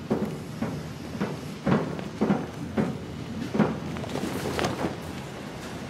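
Heavy footsteps clank on a metal floor.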